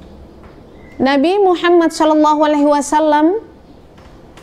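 A middle-aged woman chants in a steady, melodic voice close to a microphone.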